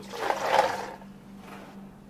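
Liquid pours into a plastic container.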